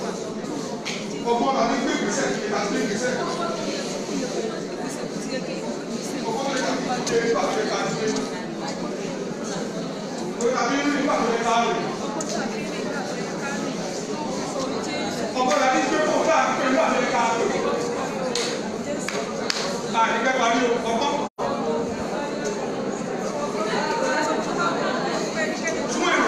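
A crowd of women sings together loudly in an echoing room.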